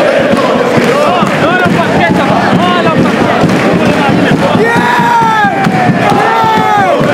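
Young men shout and whoop excitedly close by.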